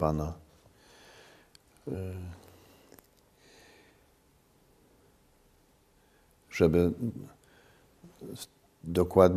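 A middle-aged man speaks calmly and slowly into a microphone, with pauses.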